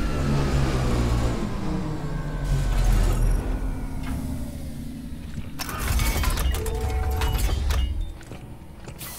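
A heavy metal door mechanism rumbles and clanks.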